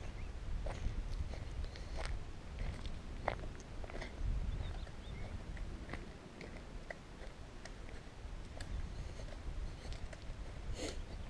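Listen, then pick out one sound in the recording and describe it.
Tyres hum on smooth asphalt.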